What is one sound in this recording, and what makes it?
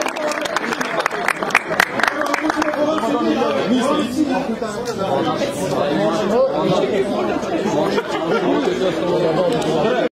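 A group of men and women sing a folk song together outdoors.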